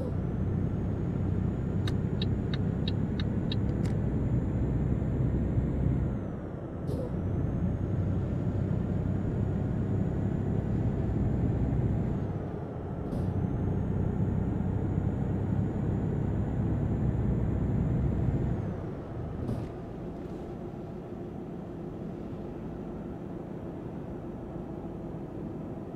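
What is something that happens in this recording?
A truck engine drones loudly, dipping briefly as gears change and then pulling again.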